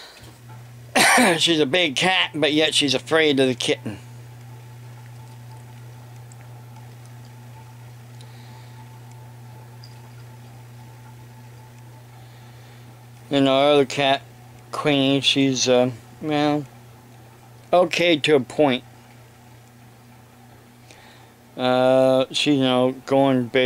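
An elderly man speaks calmly and close up, in short bursts with pauses.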